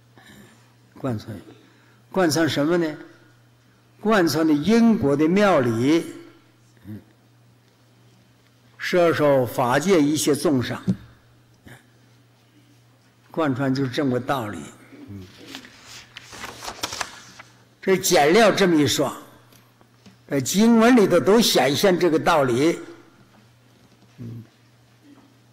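An elderly man speaks calmly and slowly into a microphone, in short phrases with pauses.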